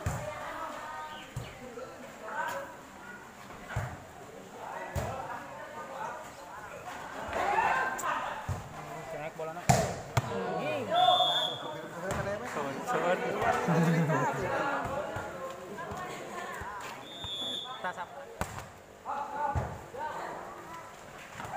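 Young men shout and call out during play, heard outdoors.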